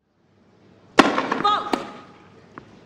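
A tennis ball is struck sharply with a racket.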